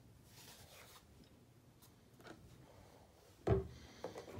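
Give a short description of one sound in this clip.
Plastic bottles knock and clatter on a sink counter.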